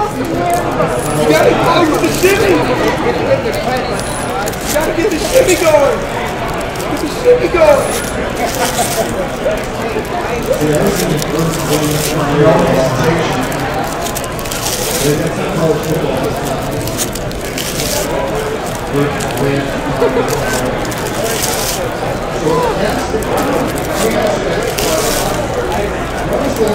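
A plastic wrapper crinkles.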